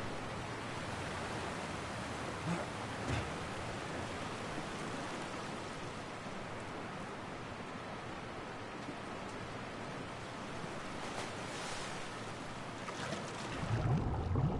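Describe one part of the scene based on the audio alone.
Water rushes and splashes steadily.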